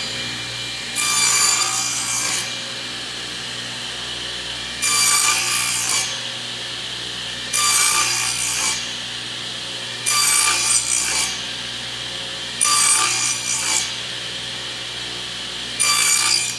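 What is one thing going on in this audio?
A table saw blade cuts through wood in short repeated bursts.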